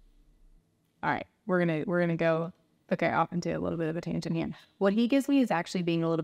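A young woman speaks with animation into a close microphone.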